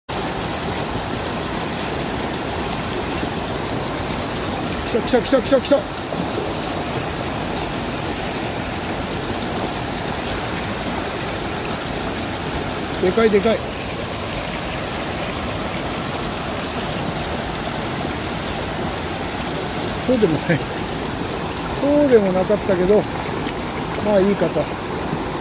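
Water pours steadily over a small weir and rushes through a stream.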